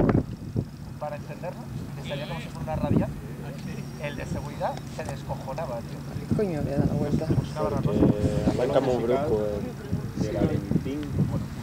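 Men talk casually nearby outdoors.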